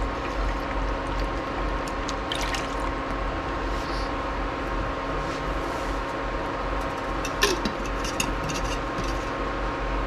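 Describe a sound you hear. Bubbles pop and fizz on the surface of the water.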